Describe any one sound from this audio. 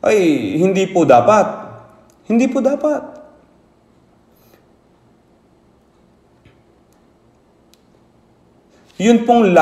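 An elderly man speaks with emphasis into a microphone, pausing between phrases.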